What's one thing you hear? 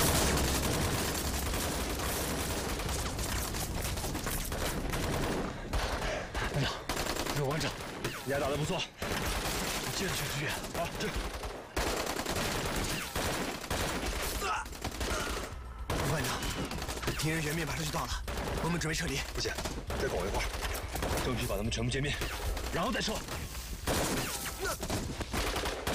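Gunfire cracks in bursts.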